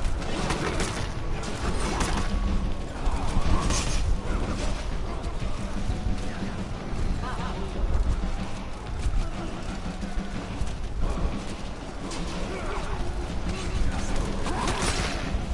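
A crowd of men shouts and yells in battle.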